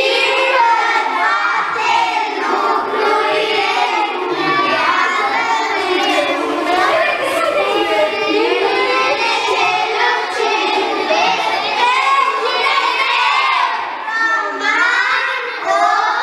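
A group of children chatter and talk over one another nearby.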